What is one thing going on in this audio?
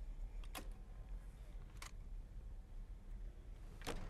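A button clicks on a control panel.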